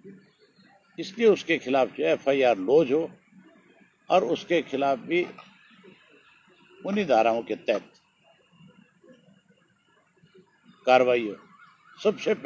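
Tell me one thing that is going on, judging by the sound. A middle-aged man speaks calmly into microphones, in bursts with pauses.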